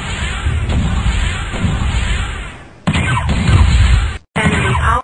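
Laser weapons fire in quick bursts.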